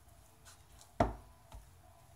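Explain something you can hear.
A hand taps against a glass bowl.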